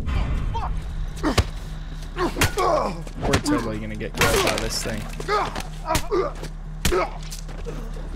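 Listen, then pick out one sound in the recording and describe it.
Heavy blows thud in a scuffle.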